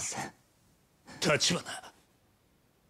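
A man speaks urgently, close by.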